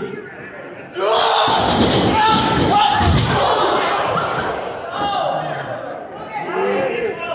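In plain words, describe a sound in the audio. A crowd of spectators cheers and shouts.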